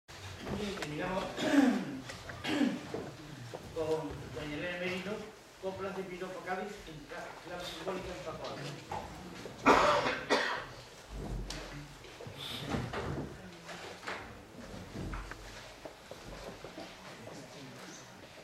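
A woman speaks over loudspeakers in an echoing hall.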